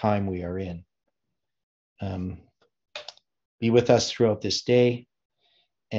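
A middle-aged man speaks calmly and close to the microphone, in short bursts with pauses.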